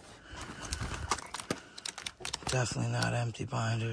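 Plastic binder pages crinkle as they are flipped.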